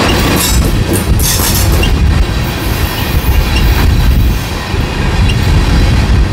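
Steel wheels clatter and squeal over rail joints.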